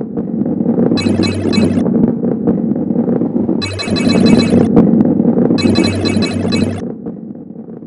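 Bright chimes ring out in short bursts as coins are collected.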